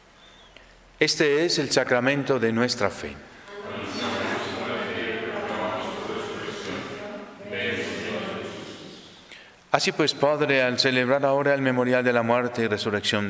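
A man chants solemnly through a microphone, echoing in a large hall.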